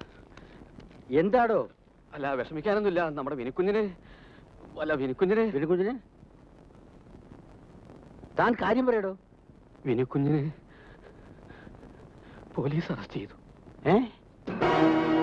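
A second elderly man answers in a strained voice.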